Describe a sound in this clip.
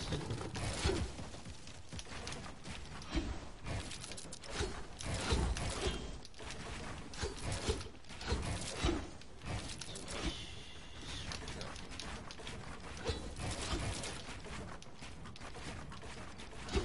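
Wooden building pieces clack and snap into place in quick bursts.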